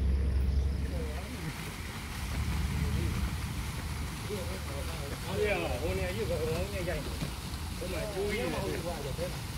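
A fountain splashes softly in the distance.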